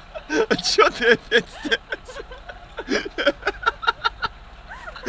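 A young woman laughs and giggles close by.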